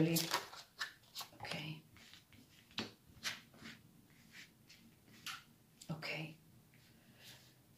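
Playing cards are laid down softly onto a table.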